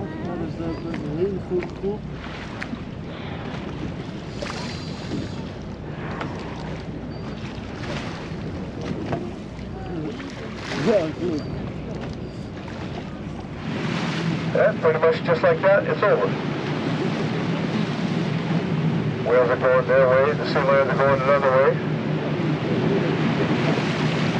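Small waves slosh and lap nearby.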